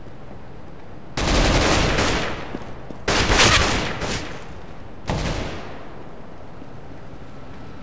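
Footsteps scuff on hard ground.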